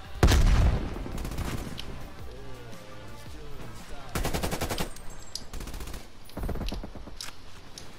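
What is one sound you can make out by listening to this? An automatic rifle fires rapid bursts of gunshots close by.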